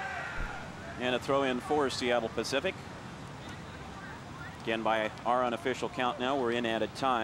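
Spectators on the sideline shout loudly outdoors.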